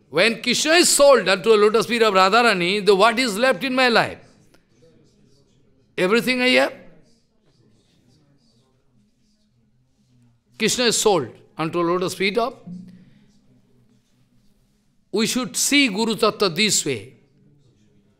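An elderly man speaks with animation into a close microphone, in bursts separated by pauses.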